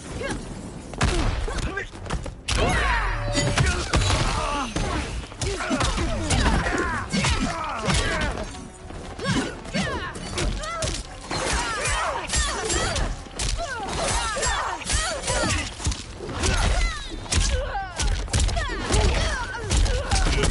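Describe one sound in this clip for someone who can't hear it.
Punches and kicks land with heavy thuds in quick bursts.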